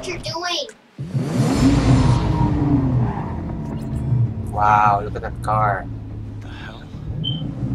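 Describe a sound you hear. A sports car engine roars and revs, then idles low.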